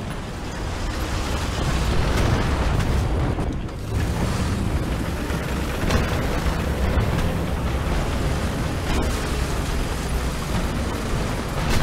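A tank engine rumbles and idles steadily.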